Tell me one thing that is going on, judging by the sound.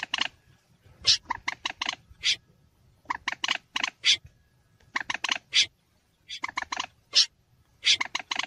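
A bird calls in rapid bursts of sharp, clucking notes.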